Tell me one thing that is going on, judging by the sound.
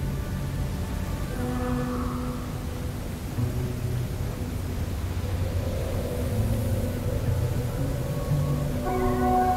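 Wind blows steadily with a low rumble.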